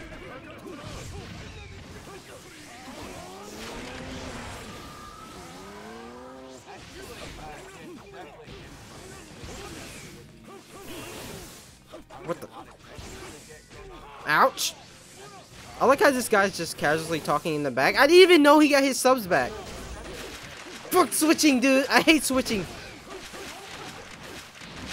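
Blasts and impacts crash during a fight in a video game.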